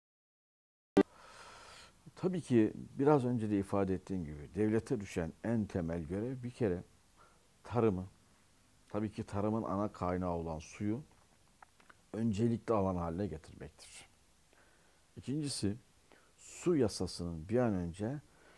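An elderly man speaks calmly and steadily, close to a microphone.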